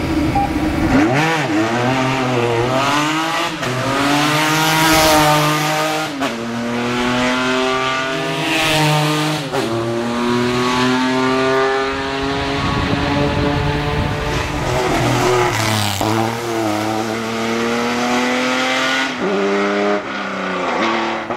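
A racing car speeds past close by.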